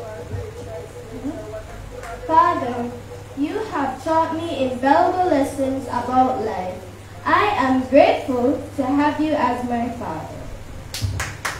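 Children recite loudly together in an echoing hall.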